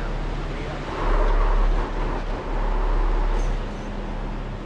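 A man speaks into a headset microphone.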